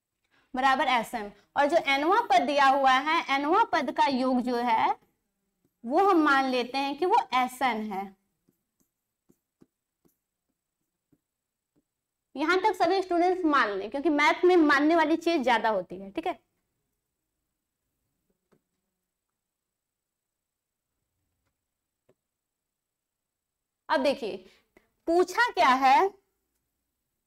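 A young woman explains calmly into a close microphone, in short bursts with pauses.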